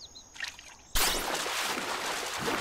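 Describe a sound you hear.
Water splashes loudly as a fish strikes.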